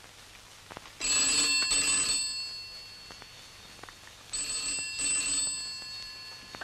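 A telephone rings twice.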